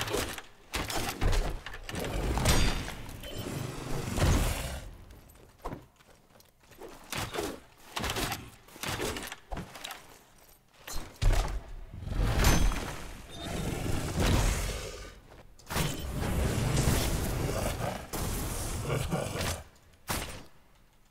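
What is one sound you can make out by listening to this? Deep rumbling booms and crashes burst out again and again.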